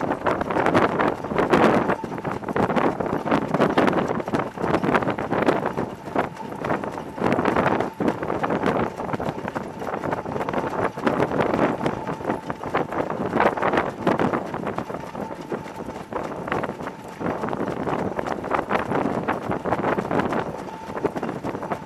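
Wind rushes loudly past a moving microphone.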